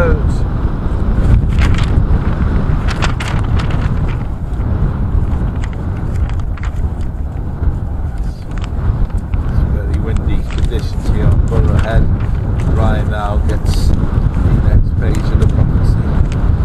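A sheet of paper rustles and crackles in the wind.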